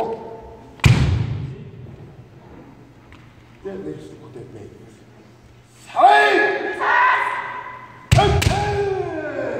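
Bamboo swords strike with sharp cracks in a large echoing hall.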